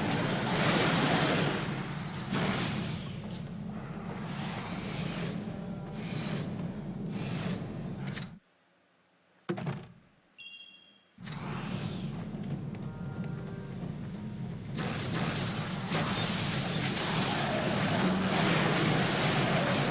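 Magic blasts and weapon hits clash in a noisy battle.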